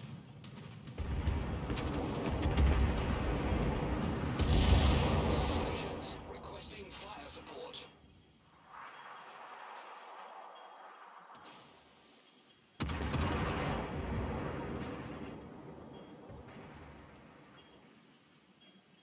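Heavy ship guns fire with deep, rumbling booms.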